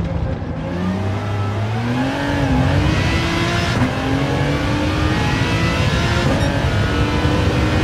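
A racing car engine revs up again, climbing through the gears.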